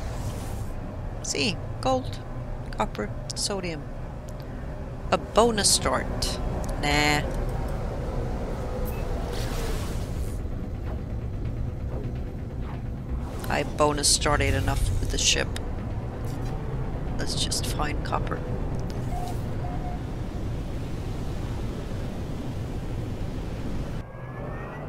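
A spaceship engine drones with a low, steady rumble.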